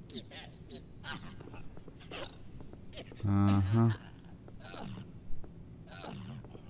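Light footsteps patter on a hard floor.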